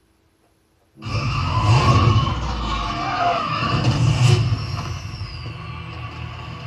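A car engine roars as cars race along a street.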